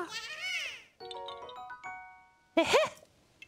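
A short bright chime tune plays.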